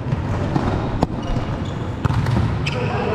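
A volleyball thuds against a net in a large echoing hall.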